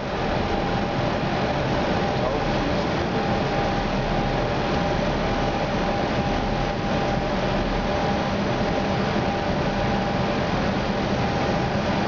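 Jet engines roar steadily with a loud, constant rushing hum.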